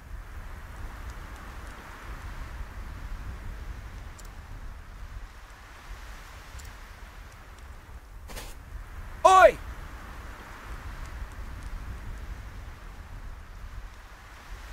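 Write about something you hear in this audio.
Wind blows softly and steadily.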